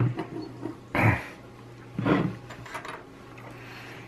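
A circuit board is set down on a wooden table with a light knock.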